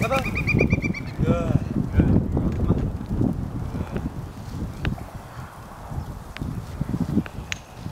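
A dog's paws patter on a gravel road.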